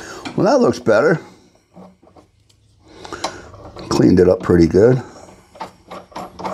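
A small nut and washer click against a metal terminal.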